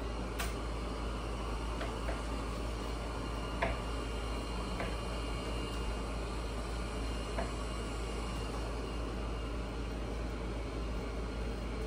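A knife taps on a cutting board.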